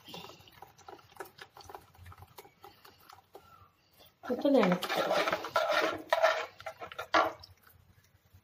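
Thick liquid pours and splashes softly into a pot.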